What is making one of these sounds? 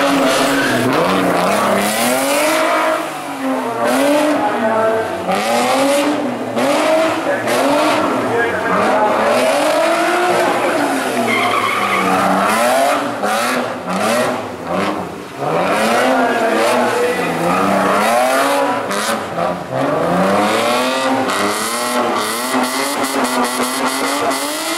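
Tyres squeal on asphalt as a rally car slides sideways.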